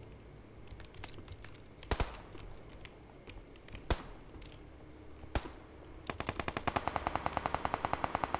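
Footsteps tap across a hard tiled floor.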